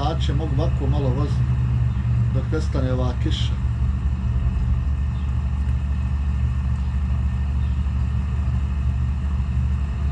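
A truck engine drones steadily.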